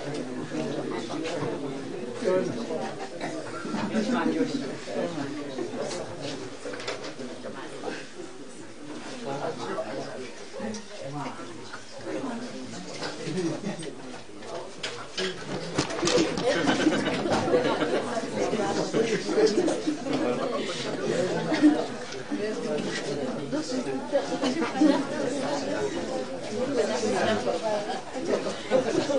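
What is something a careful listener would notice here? A crowd of men and women chatter and murmur nearby, growing louder partway through.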